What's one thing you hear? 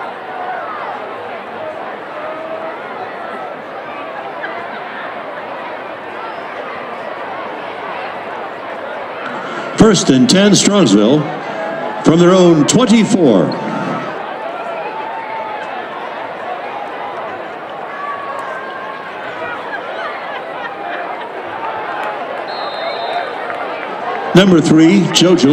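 A crowd murmurs and chatters in an open-air stadium.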